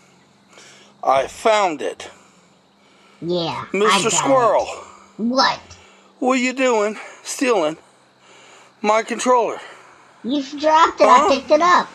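A toy squirrel chatters in a high, warbling voice through a small speaker.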